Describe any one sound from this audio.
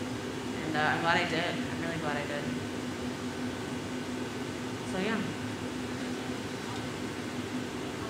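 A furnace roars and hums steadily.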